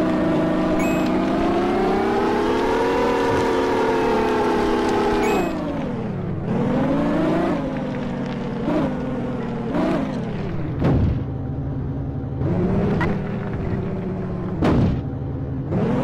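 A car engine hums steadily, then revs up and down in short bursts.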